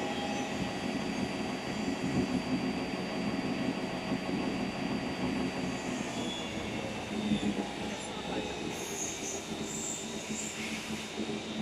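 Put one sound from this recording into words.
A machine hums and rumbles steadily as it runs.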